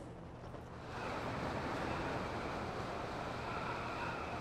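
Wind rushes loudly past a figure falling through the air.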